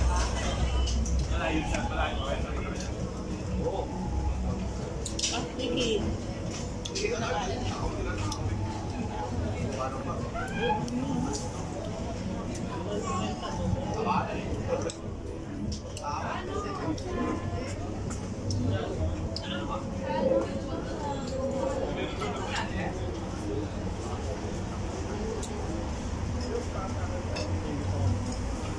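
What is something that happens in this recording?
Many people chatter in the background outdoors.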